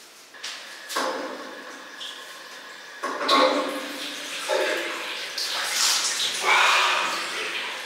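Water runs from a tap into a sink and splashes.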